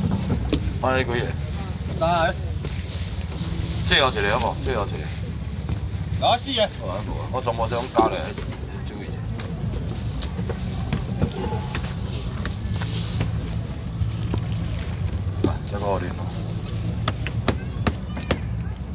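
Plastic trays clatter and knock.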